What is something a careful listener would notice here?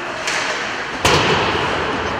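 A puck cracks against the boards.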